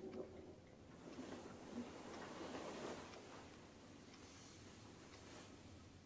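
Bedding rustles softly.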